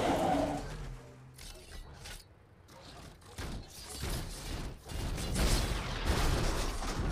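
Loud metallic crashes and clanks from a video game ring out.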